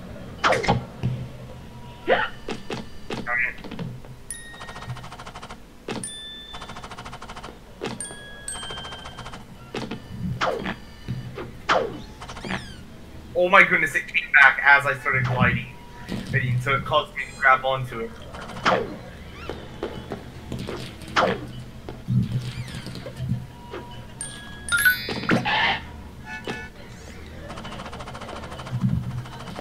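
Cheerful game music plays throughout.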